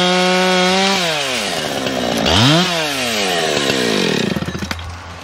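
A chainsaw engine revs down and idles, rising in bursts.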